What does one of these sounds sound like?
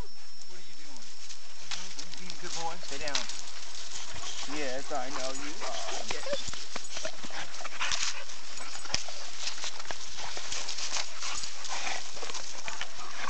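Dogs' paws crunch and scuff on gravelly ground.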